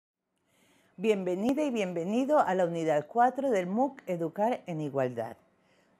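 A middle-aged woman speaks calmly and clearly into a close microphone.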